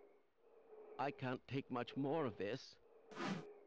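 A bearded man shouts and pleads in panic.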